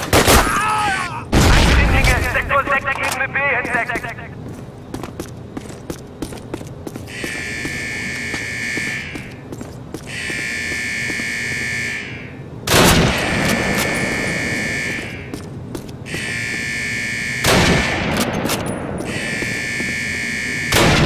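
Footsteps echo along a hard tunnel floor.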